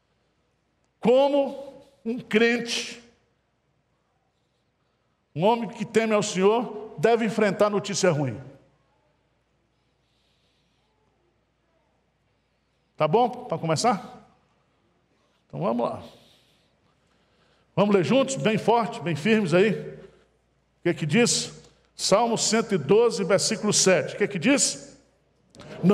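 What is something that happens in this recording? A middle-aged man speaks with animation through a headset microphone, with pauses between phrases.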